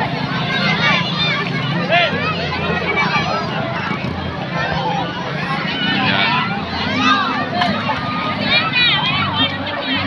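A large crowd of people chatters outdoors.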